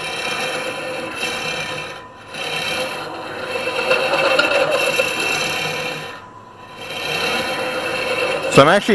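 A hollowing tool scrapes and hisses against spinning wood, in bursts.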